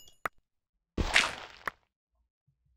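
A shovel digs into dirt with a crunching scrape.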